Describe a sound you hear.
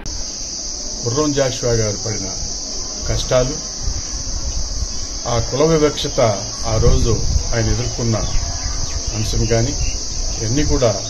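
A man speaks calmly and clearly into a microphone close by.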